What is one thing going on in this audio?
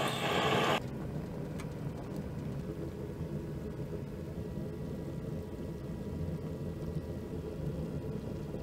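Thick liquid bubbles and simmers in a pot.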